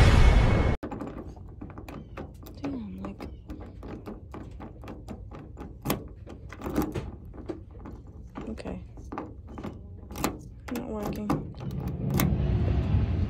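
A key scrapes and clicks in a car door lock.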